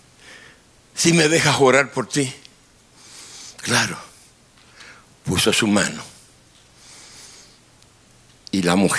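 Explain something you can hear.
An elderly man speaks with emphasis into a microphone, in bursts with pauses.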